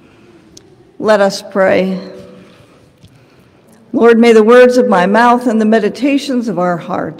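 A middle-aged woman speaks calmly into a microphone in a reverberant hall.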